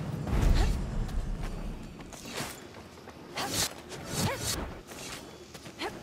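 Swords swish through the air.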